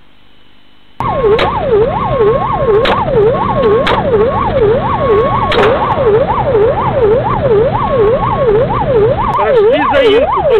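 A police siren wails loudly, rising and falling quickly.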